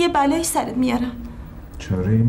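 A woman speaks anxiously, close by.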